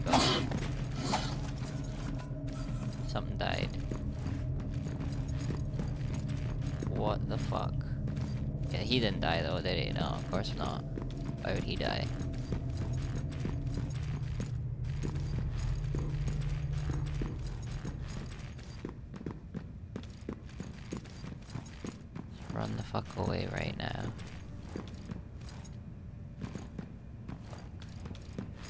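Footsteps patter quickly on hard floors and stairs.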